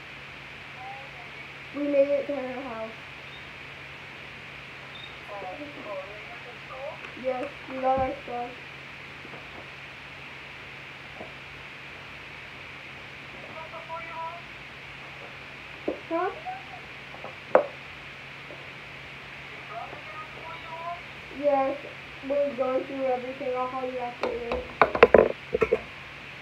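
A young girl talks close by, with animation.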